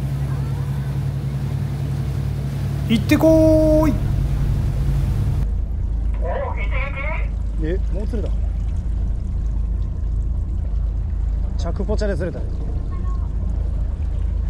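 A fishing reel clicks as its line is wound in.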